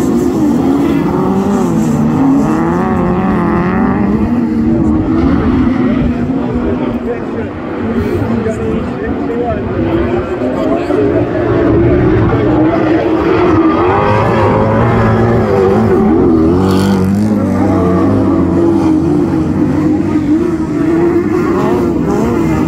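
Racing car engines roar and rev up and down, close by and outdoors.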